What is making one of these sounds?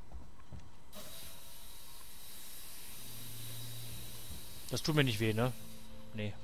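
Steam hisses loudly from a vent.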